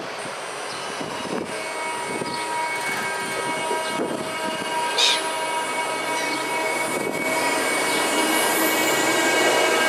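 An electric train rolls into a station with a steady hum that grows louder.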